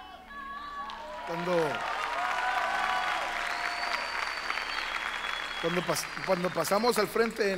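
A large crowd cheers and applauds in a large hall.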